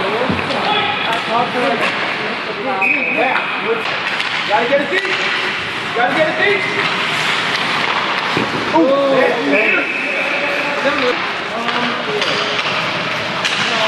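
Spectators shout and cheer in an echoing rink.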